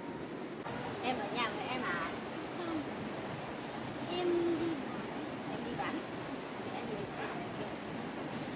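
A small child babbles close by.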